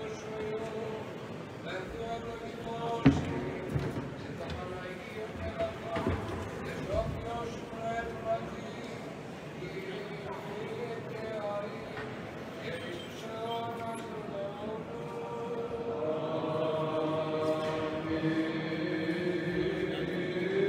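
Men chant slowly in a large echoing hall.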